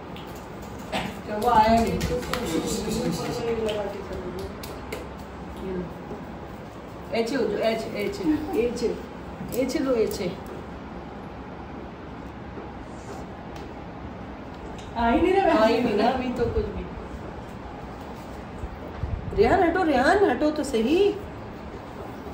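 A woman speaks gently and playfully close by.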